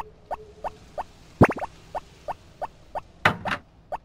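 Light footsteps tap steadily across a wooden floor.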